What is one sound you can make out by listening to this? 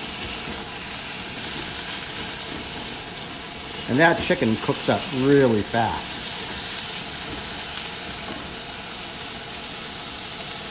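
A spatula scrapes and clatters against a pan.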